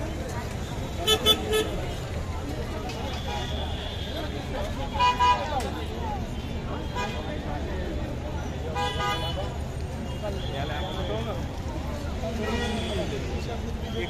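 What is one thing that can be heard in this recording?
Car engines hum in passing traffic.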